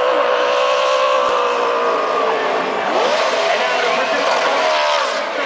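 A race car engine roars loudly at high revs, rising and falling in pitch.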